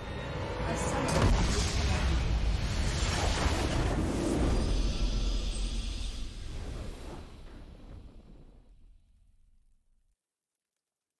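A triumphant game victory fanfare swells and fades.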